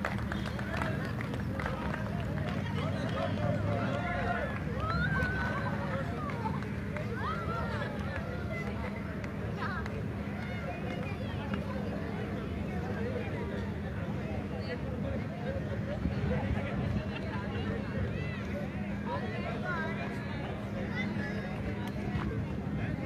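A crowd of men and boys chatters and calls out outdoors, some way off.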